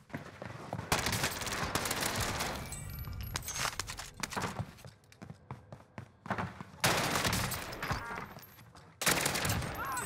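Gunfire bursts in rapid volleys.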